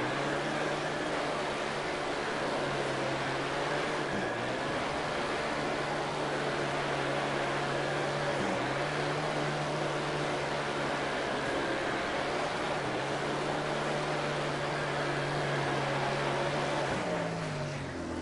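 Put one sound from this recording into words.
A racing car engine roars steadily at high revs, dropping briefly as gears shift.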